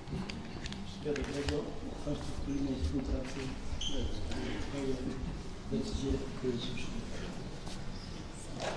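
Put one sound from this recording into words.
A man talks quietly and warmly up close.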